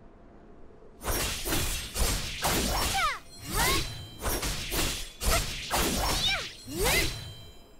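Sword slashes whoosh and ring out in quick bursts.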